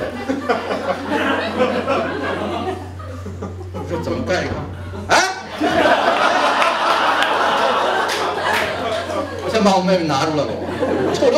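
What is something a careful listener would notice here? A second middle-aged man answers with animation through a microphone.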